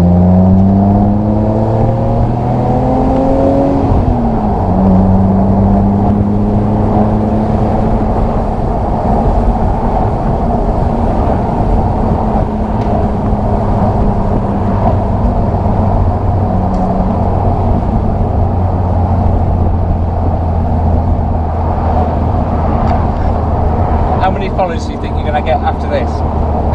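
A straight-six sports car engine accelerates and shifts up a gear.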